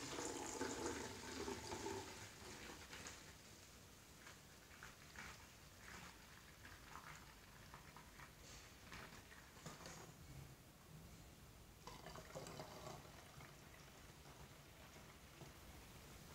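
Liquid pours in a thin stream into a plastic bottle.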